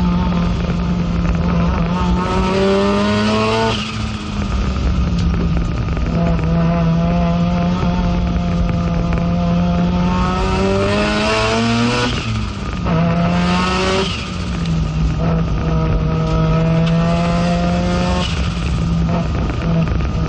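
The car's body and cockpit rattle and vibrate over the track.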